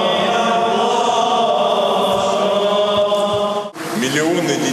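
A choir chants in long, held notes.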